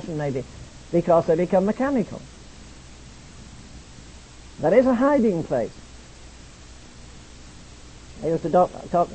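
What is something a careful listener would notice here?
An elderly man preaches with emphasis, in short bursts broken by pauses.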